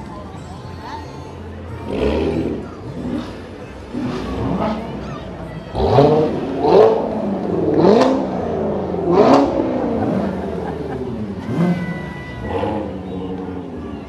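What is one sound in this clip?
Sports car engines rumble and rev as the cars roll past.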